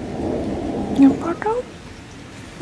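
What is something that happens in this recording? A cat meows briefly.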